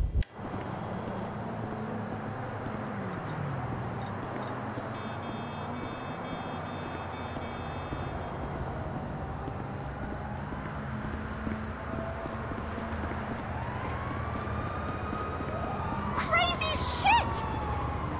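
Footsteps tap on pavement as a man runs.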